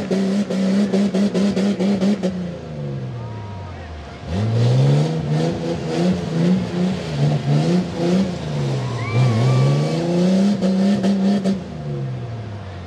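Mud splashes and sprays from spinning tyres.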